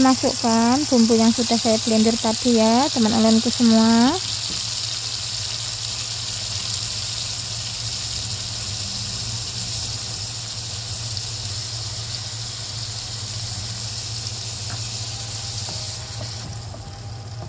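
Food sizzles and crackles in hot oil.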